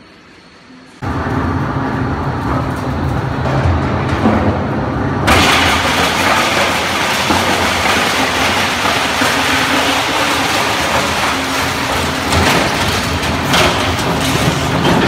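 A shredder machine rumbles loudly.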